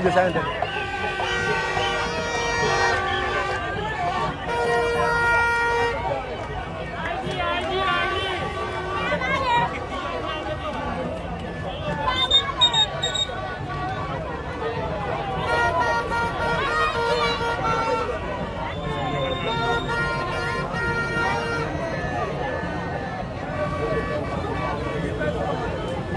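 Many men and women shout and cheer close by.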